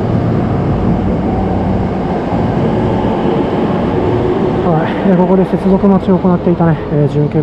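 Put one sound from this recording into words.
A train rumbles and rolls slowly along the tracks.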